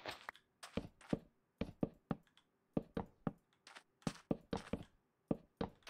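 Wooden blocks are set down with short, hollow knocks.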